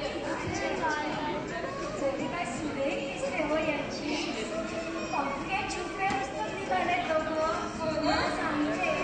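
A woman speaks in reply.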